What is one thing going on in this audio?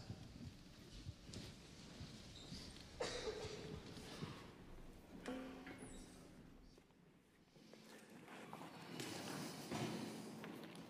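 A band plays on stage, heard from afar in a large echoing hall.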